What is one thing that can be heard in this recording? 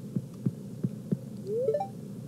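Soft footsteps tap on a wooden floor.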